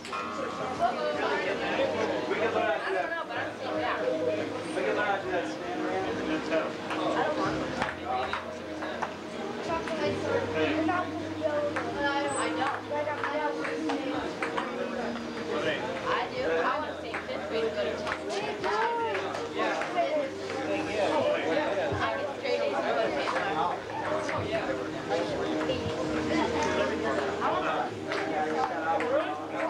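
A crowd of children and adults chatter outdoors.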